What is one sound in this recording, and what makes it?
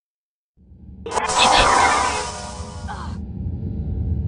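A magic spell bursts with a loud crackling whoosh.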